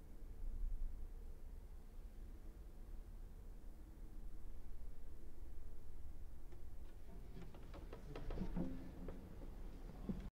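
A cello plays slowly and softly, then with sharper, plucked notes.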